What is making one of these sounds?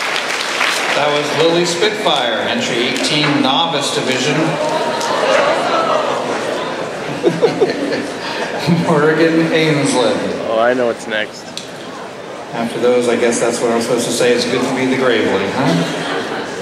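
A man speaks with animation into a microphone, heard over loudspeakers.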